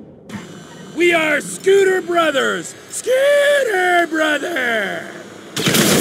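A man shouts with excitement.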